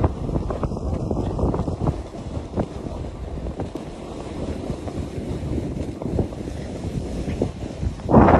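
A snowboard scrapes and hisses over packed snow close by.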